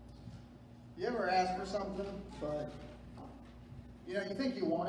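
A young man speaks into a microphone, heard through loudspeakers in a large echoing room.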